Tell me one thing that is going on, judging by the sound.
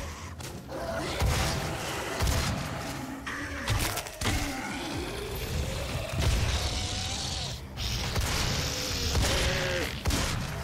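Monsters snarl and roar nearby.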